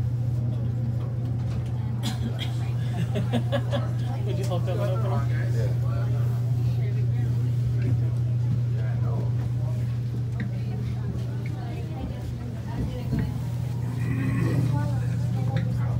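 An elevator hums steadily as it travels.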